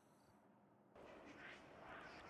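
A shimmering magical tone swells.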